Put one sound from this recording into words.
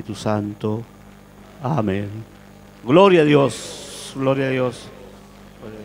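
An elderly man preaches with passion into a microphone, heard through loudspeakers in an echoing hall.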